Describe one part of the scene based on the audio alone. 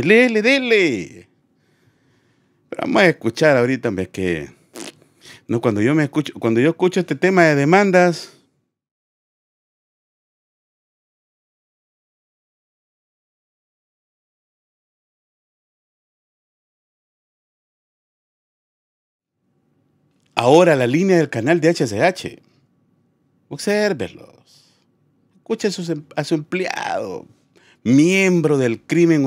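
A man talks with animation into a close microphone, pausing for long stretches.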